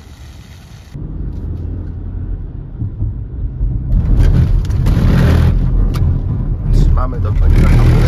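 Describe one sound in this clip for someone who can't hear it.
A car engine roars loudly from inside the car.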